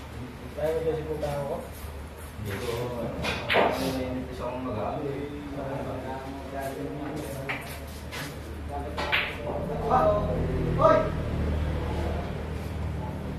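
Several men talk and call out casually nearby.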